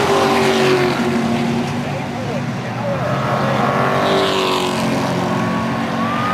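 A crowd of people talks and cheers loudly nearby.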